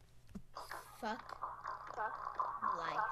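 A young girl speaks close to a computer microphone.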